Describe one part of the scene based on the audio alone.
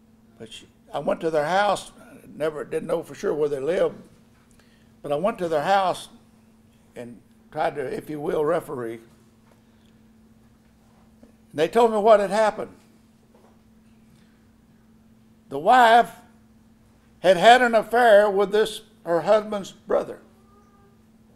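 An elderly man speaks with emphasis into a microphone, in bursts with pauses.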